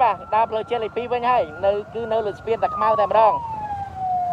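A police siren yelps rapidly.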